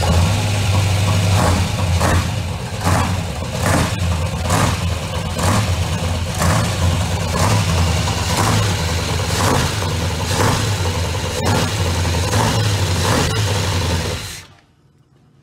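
An engine runs loudly with a rough, pulsing rumble, then cuts off.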